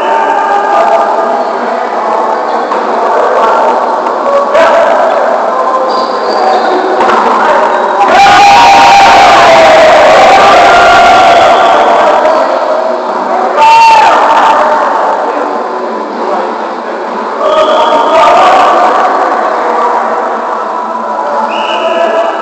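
Players call out and shout to each other in a large echoing gym.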